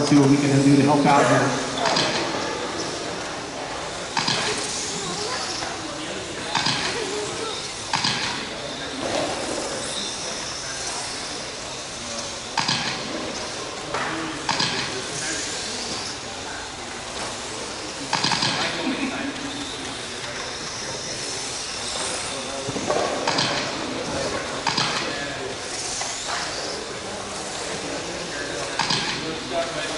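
Small electric motors of radio-controlled cars whine as they race around a track, echoing in a large hall.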